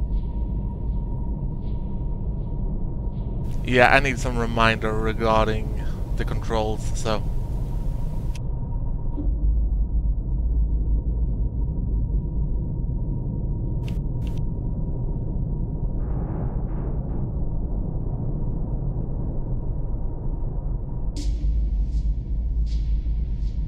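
A submarine hums low underwater.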